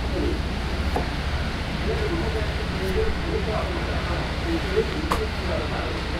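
A knife taps against a cutting board.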